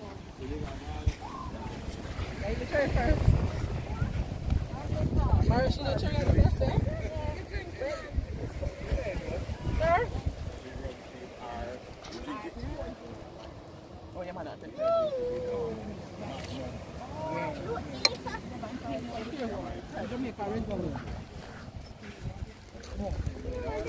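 Several adults, men and women, talk and laugh together nearby.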